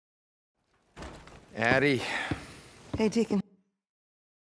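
A man speaks in a low, tired voice.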